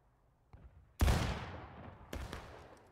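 A rifle fires with a loud sharp bang.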